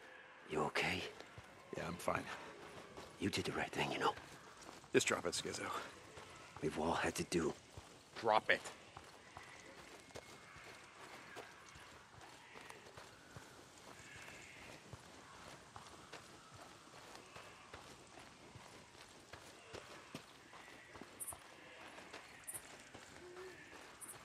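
Footsteps crunch through grass and dirt.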